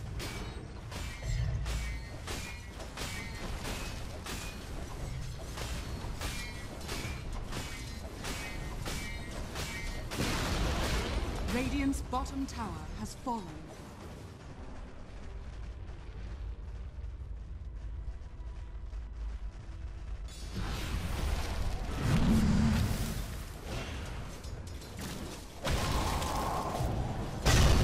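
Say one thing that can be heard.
Magic spells crackle and burst during a fantasy battle.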